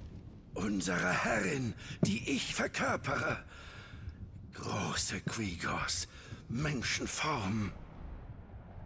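A man speaks with dramatic emphasis, close by.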